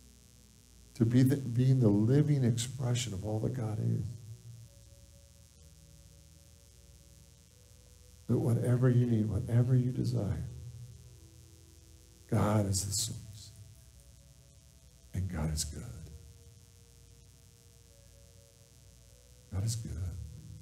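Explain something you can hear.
A middle-aged man speaks calmly through a headset microphone, with long pauses between phrases.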